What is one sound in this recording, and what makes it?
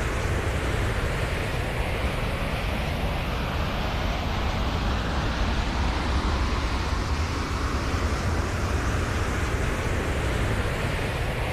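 A jetpack roars in steady flight.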